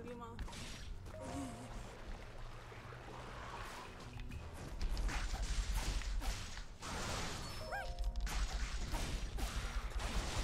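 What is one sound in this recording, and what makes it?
Swords clash and slash in a noisy battle.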